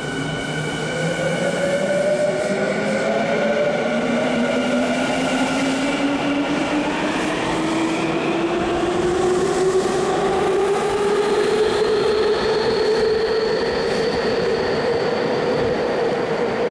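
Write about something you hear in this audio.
A train's wheels rumble and clatter on the rails in an echoing space.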